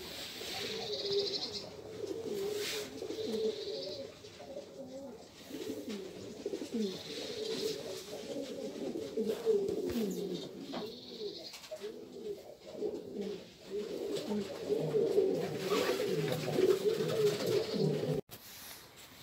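Pigeons coo softly and steadily nearby.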